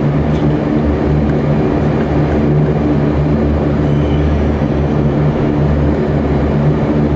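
A propeller engine drones loudly and steadily close by.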